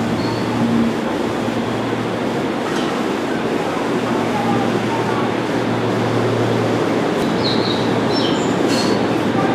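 A train rumbles and hums steadily alongside a platform.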